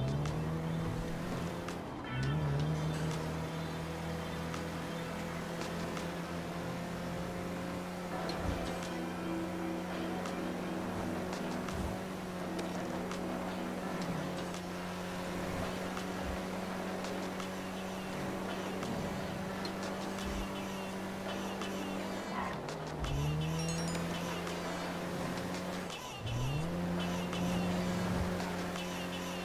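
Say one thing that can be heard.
A car engine hums steadily at speed and rises in pitch as the driver shifts gears.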